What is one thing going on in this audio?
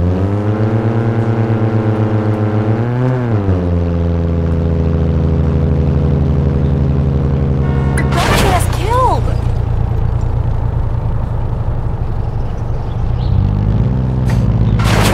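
A car engine hums steadily and revs.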